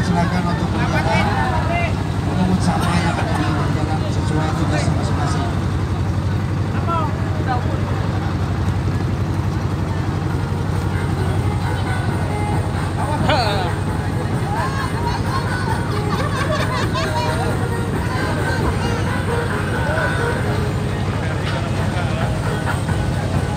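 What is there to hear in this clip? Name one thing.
Men and women chatter and call out nearby, outdoors.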